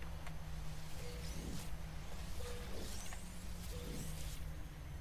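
A short soft chime sounds several times.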